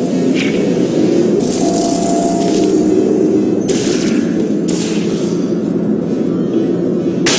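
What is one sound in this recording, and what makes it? A low electric hum drones steadily.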